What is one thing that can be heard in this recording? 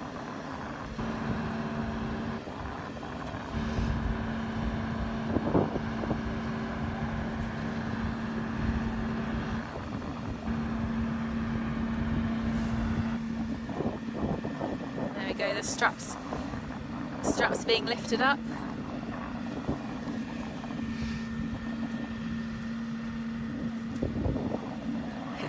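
A boat lift's engine hums steadily nearby.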